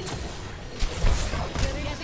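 A shimmering energy shield hums.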